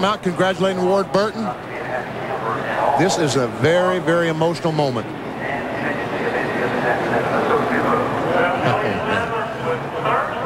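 A race car engine roars steadily as the car drives along the track.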